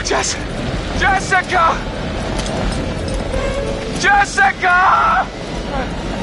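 A young man shouts loudly, calling out.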